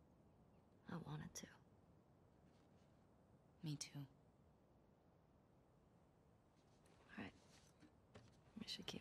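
Another young woman answers quietly nearby.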